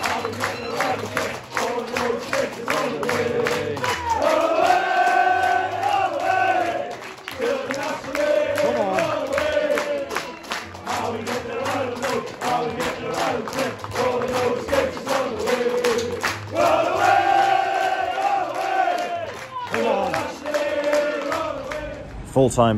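A crowd claps in rhythm.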